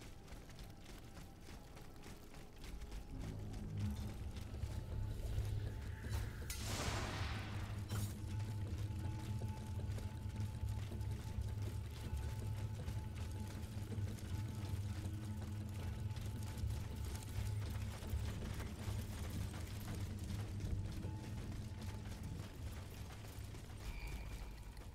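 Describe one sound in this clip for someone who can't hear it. Footsteps run quickly over wet cobblestones.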